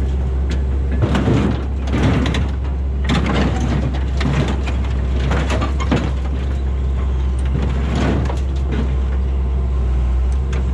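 Scrap metal clanks and scrapes as an excavator bucket presses it down onto a trailer.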